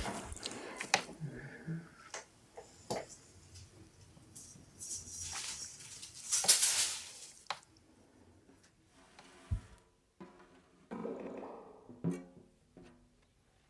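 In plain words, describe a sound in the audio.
A man taps lightly on drums with soft, scattered hits.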